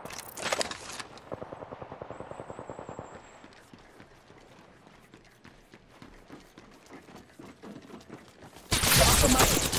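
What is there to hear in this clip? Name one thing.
Footsteps run quickly on a hard surface.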